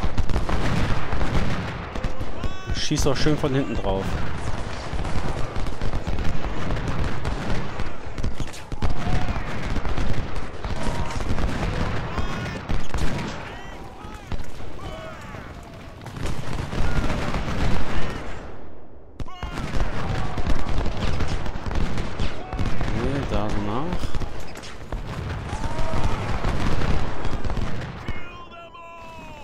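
Musket volleys crackle and rattle in rapid bursts.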